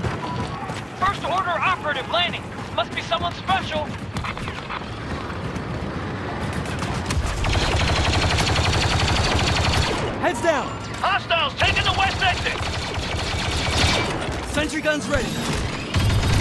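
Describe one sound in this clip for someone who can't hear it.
Blaster gunfire zaps and cracks in rapid bursts.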